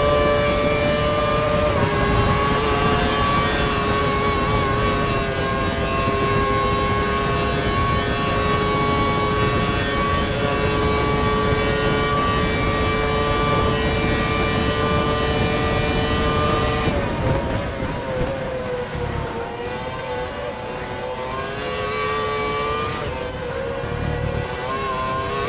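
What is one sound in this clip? A racing car engine screams at high speed, then drops in pitch and revs up again through the gears.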